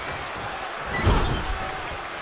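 A heavy thud sounds as a wrestler is slammed.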